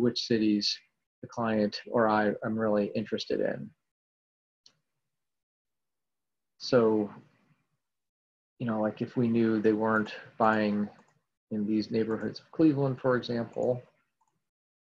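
A man talks calmly into a microphone, close by, in short bursts with pauses.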